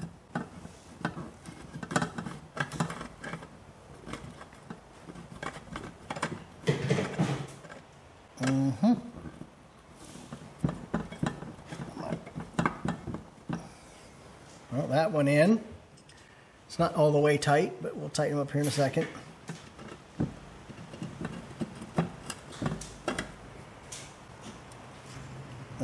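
A screwdriver clicks and scrapes against metal.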